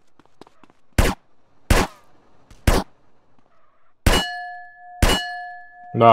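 Gunshots ring out in sharp single cracks.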